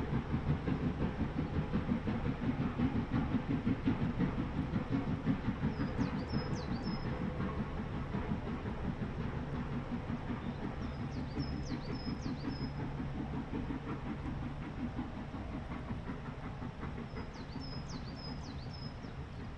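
A steam locomotive chugs steadily with rapid puffs, slowly fading into the distance.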